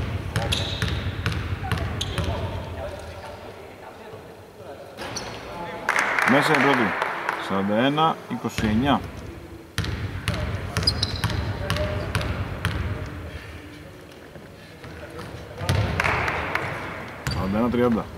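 A basketball bounces on a hard court, echoing in a large empty hall.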